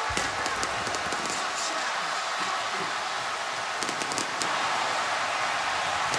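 Fireworks pop and crackle overhead.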